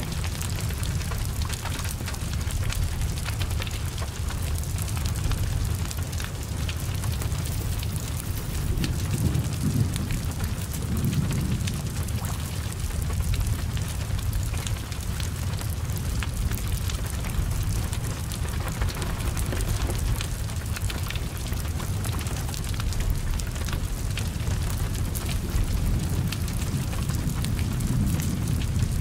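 Flames roar steadily from a burning car.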